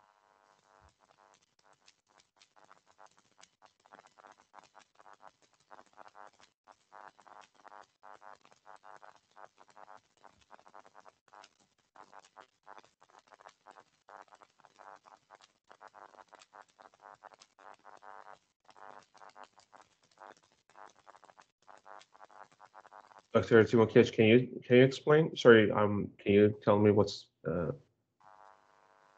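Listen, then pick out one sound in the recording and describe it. A man talks steadily over an online call.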